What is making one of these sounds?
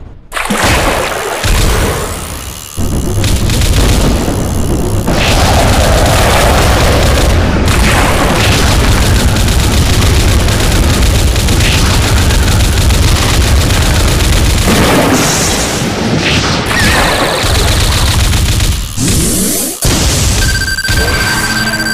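Water splashes and churns as a hooked fish thrashes.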